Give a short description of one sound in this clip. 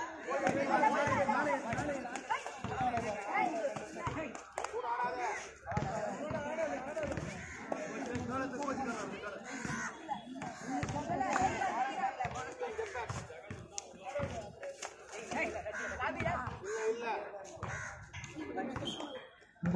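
A crowd of young men and boys shout and chant outdoors.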